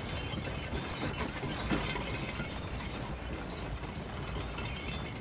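Wooden cart wheels rumble and creak over the ground.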